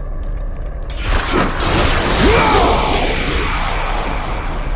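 A magic burst whooshes and crackles loudly.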